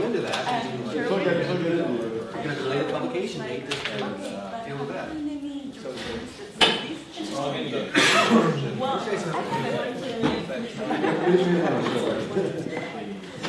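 Several men and women talk in a murmur of overlapping voices.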